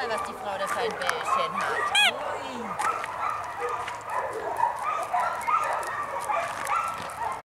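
A dog's paws patter on loose gravel.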